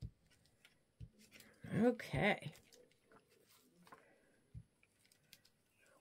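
Paper crinkles softly as hands smooth and press it flat.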